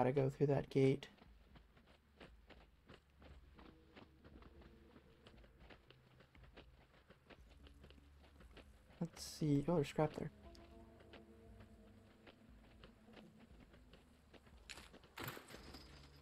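Footsteps crunch on grass and undergrowth.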